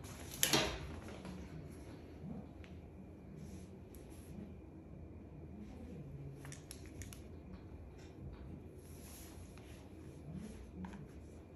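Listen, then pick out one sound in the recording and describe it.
Plastic hair tools clack and rattle as they are handled.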